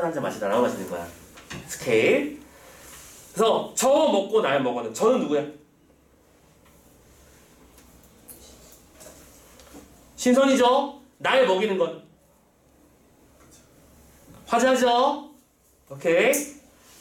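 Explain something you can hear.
A middle-aged man speaks close by in short bursts, calmly explaining.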